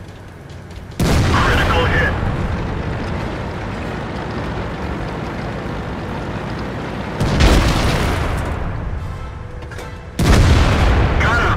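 A tank cannon fires with a loud boom that rumbles away.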